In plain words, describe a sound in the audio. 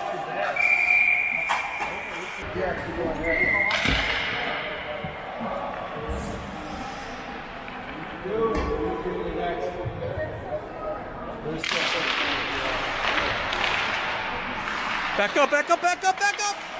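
Ice skates scrape and hiss across the ice of a large echoing rink.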